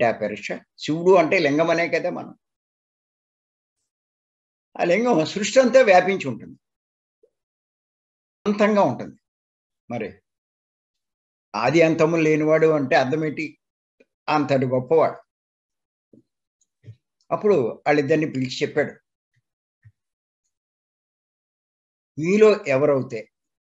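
An elderly man speaks with animation over an online call, in bursts with pauses.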